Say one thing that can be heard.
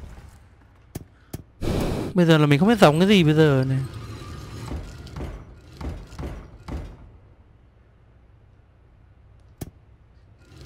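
Heavy glass panels turn with a click.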